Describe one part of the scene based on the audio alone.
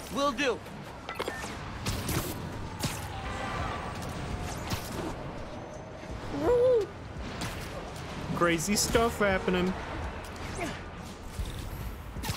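Wind whooshes past.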